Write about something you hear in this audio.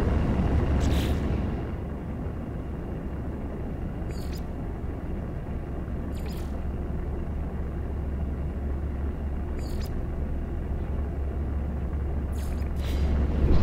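Menu clicks tick sharply a few times.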